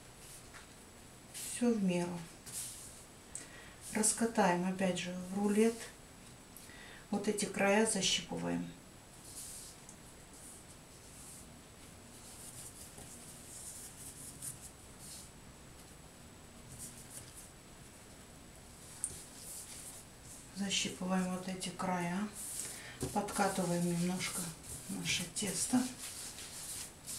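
Soft dough is pressed and rolled by hand on a table.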